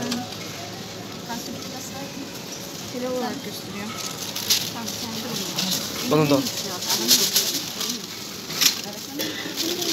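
A paper bag crinkles and rustles close by.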